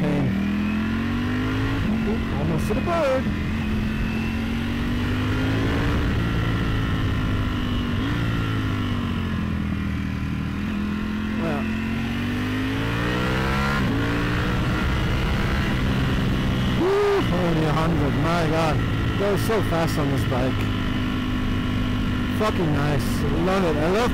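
A motorcycle engine hums close by, its pitch rising and falling as the rider speeds up and slows down.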